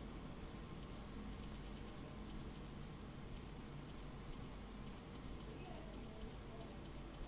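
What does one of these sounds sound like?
Soft interface clicks tick in quick runs as menu options scroll.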